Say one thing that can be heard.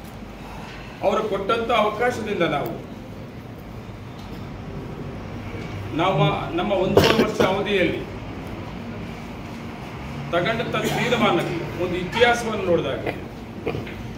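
An elderly man reads out calmly into microphones, with pauses between phrases.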